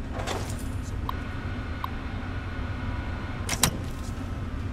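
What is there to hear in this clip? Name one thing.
An old computer terminal switches on with a click and a hum.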